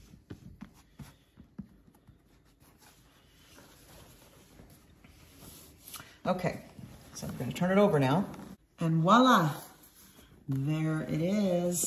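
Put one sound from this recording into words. Hands rub and pat a leather bag.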